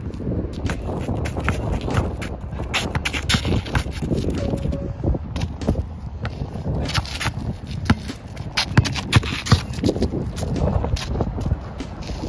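A basketball bounces on an outdoor asphalt court.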